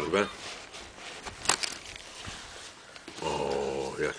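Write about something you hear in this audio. A leather bag's flap rustles as it is opened.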